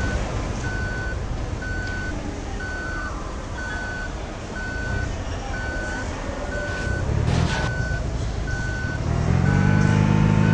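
A reversing alarm beeps at an even pace.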